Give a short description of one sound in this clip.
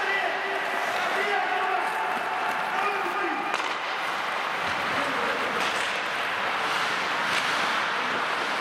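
Ice skates scrape and hiss across the ice in a large echoing hall.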